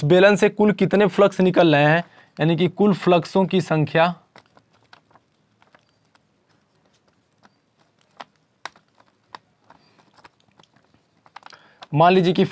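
A young man speaks calmly and explains, close by.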